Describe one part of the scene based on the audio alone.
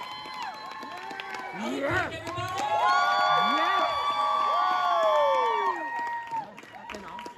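A crowd cheers and whistles loudly in a large hall.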